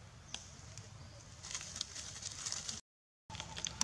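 Dry leaves rustle and crunch as a monkey rummages through them.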